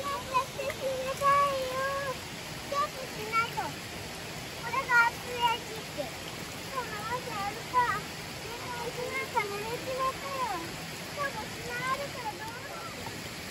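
Young children chatter and call out with high voices close by.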